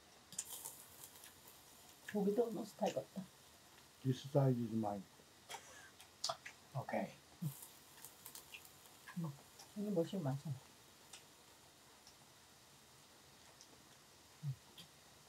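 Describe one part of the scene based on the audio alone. Metal tongs and chopsticks click and clatter against dishes.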